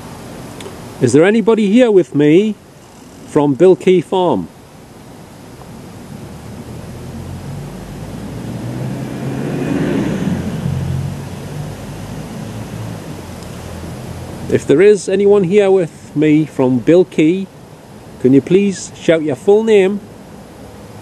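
A middle-aged man talks calmly, close by.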